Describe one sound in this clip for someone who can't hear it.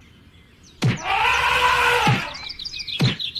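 An elephant trumpets loudly.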